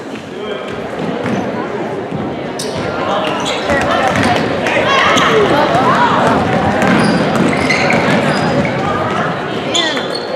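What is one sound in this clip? A crowd cheers and shouts in an echoing gym.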